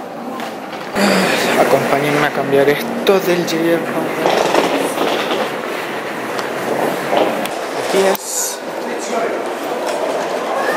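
People murmur in a large, echoing hall.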